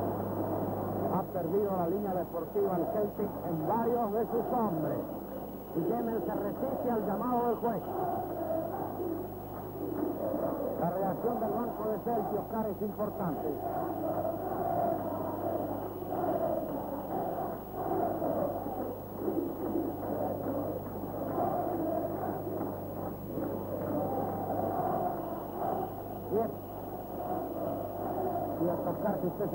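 A large stadium crowd chants and roars throughout.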